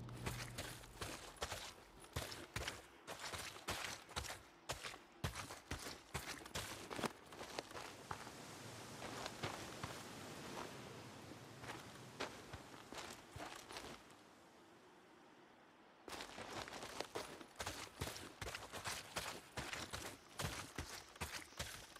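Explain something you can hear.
Footsteps crunch on gravel and dry grass.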